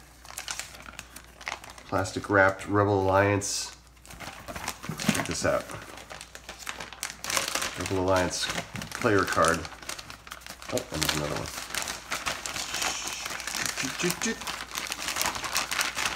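Plastic film crinkles and rustles as hands handle it.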